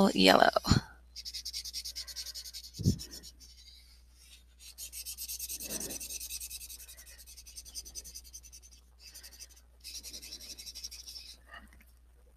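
A marker scratches across paper.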